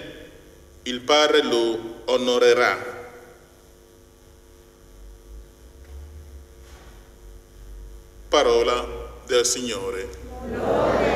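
An older man chants through a microphone in an echoing room.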